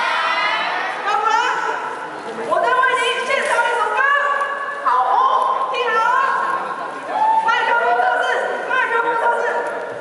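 A second young woman sings through a microphone and loudspeakers.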